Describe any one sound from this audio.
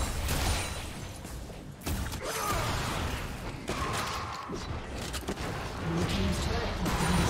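Game combat effects whoosh and crackle.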